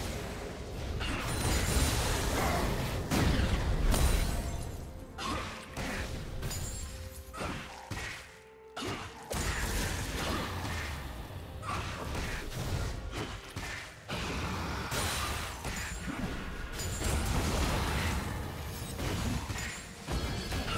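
Video game weapons clash and strike.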